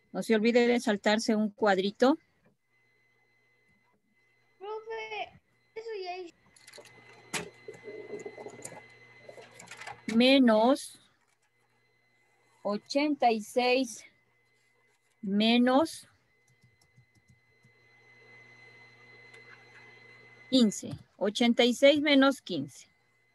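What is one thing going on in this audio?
A woman explains calmly over an online call.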